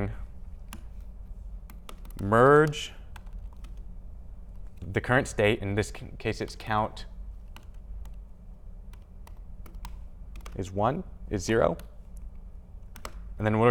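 Laptop keys click softly as a young man types.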